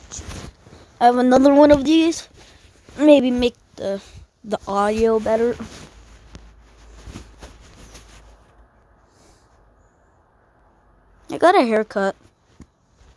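A child speaks with animation close to a phone microphone.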